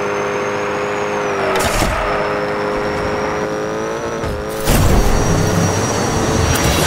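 A small toy car engine whines steadily at high revs.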